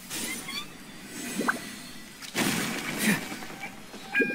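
A magical burst whooshes and crackles.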